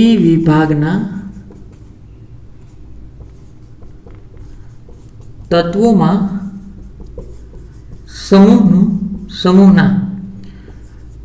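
A man speaks slowly and clearly nearby, in short phrases with pauses.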